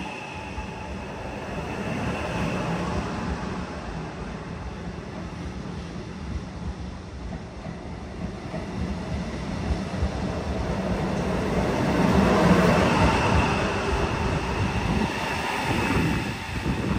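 A train's motors hum steadily.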